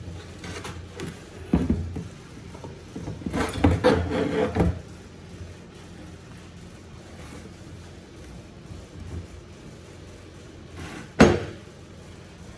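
A metal lever clanks and rattles as a hand pushes it back and forth.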